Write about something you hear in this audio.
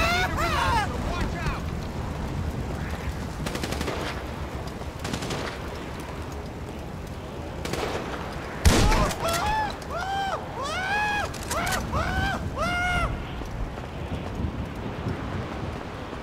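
Footsteps run on a concrete rooftop.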